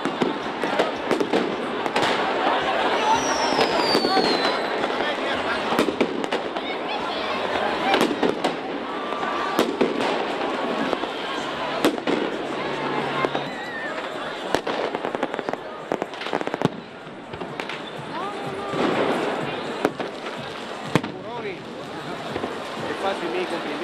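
Firecrackers and fireworks bang sharply overhead.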